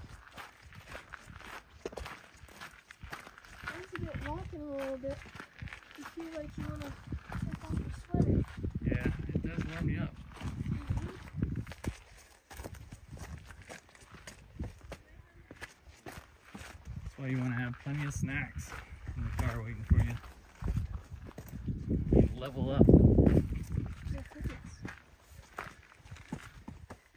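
Footsteps crunch on rocky gravel.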